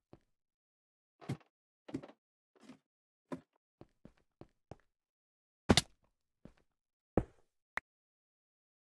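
A pickaxe chips and breaks stone blocks in short, repeated bursts.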